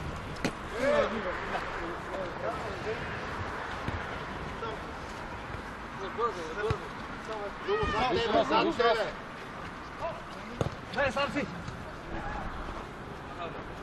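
Men shout and call out to each other across an open outdoor field.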